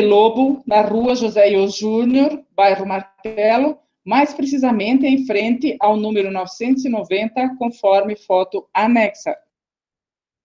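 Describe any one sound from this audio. A woman speaks steadily over an online call.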